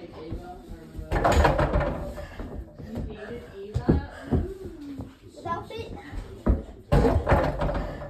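A basketball thuds against a small hoop's backboard.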